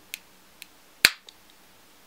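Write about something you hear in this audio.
A sharp snap rings out once.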